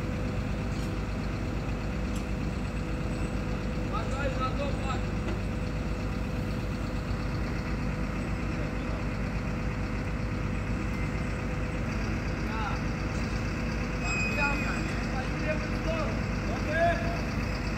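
A crane's engine rumbles steadily nearby.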